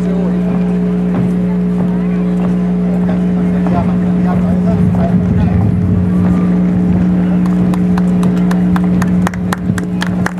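A brass band plays a march outdoors.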